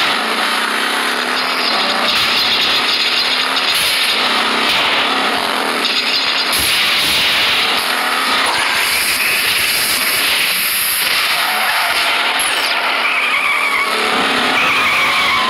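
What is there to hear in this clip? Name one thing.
Toy car engines whine and buzz steadily as they race.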